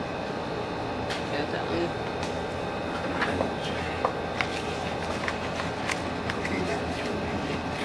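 Soft clicks and rustles come from close by as small objects are handled.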